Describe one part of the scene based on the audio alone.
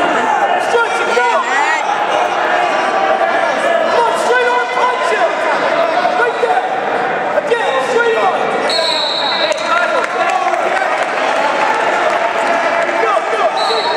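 A crowd of spectators chatters and calls out throughout, echoing in a large hall.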